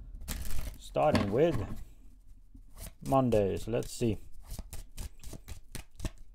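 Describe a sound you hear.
Playing cards tap and shuffle in a man's hands.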